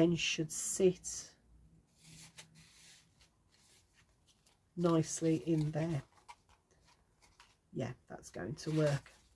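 Paper rustles softly as it is folded and handled.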